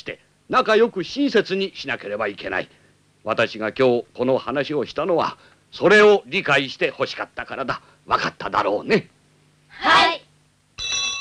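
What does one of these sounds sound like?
An elderly man speaks sternly and firmly nearby.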